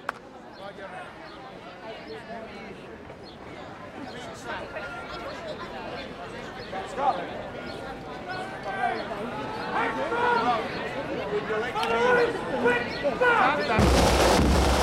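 A crowd chatters loudly outdoors.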